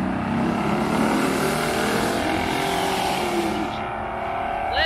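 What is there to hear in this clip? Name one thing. A race car engine roars loudly as it speeds away down the track.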